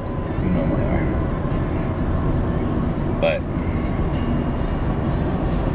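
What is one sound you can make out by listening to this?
A car engine and road noise rumble steadily from inside the car.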